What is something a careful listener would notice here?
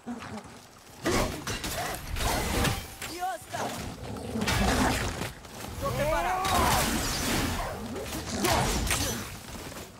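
Heavy blows and metal clashes ring out in a fight.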